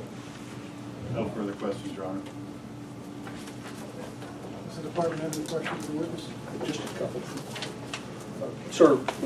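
A man speaks calmly into a microphone in a room.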